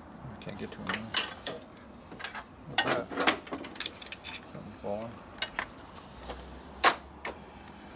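Metal tools clink and tap against bolts.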